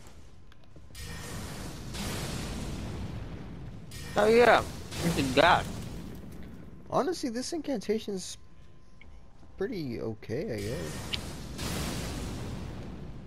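A magic spell bursts with a crackling, hissing rush.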